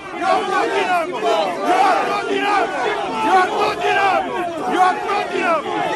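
An elderly man shouts angrily close by.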